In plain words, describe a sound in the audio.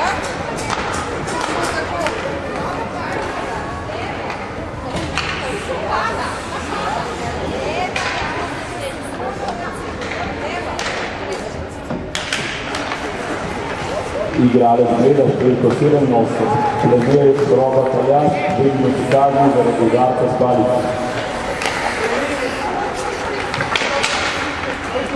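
Skates scrape and hiss across the ice in a large echoing hall.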